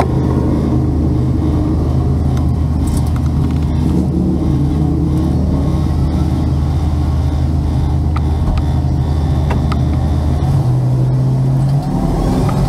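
A motorcycle engine hums steadily up close, its pitch shifting near the end.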